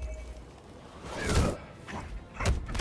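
A burst of fire roars and whooshes.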